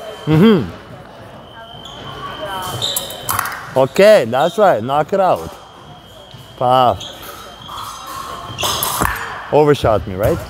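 Fencing blades clash and clink in a large echoing hall.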